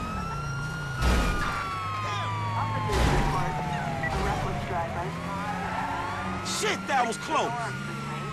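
Cars crash together with loud thuds.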